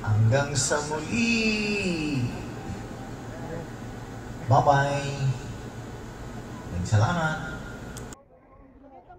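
A young man speaks loudly nearby, outdoors.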